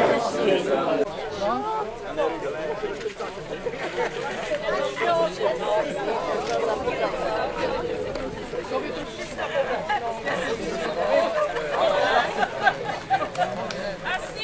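A crowd of elderly people talk outdoors.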